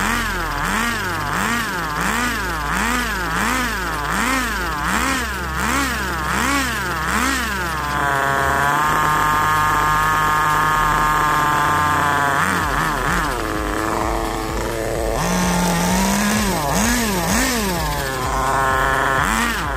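A nitro engine on a radio-controlled buggy revs up and down in quick bursts.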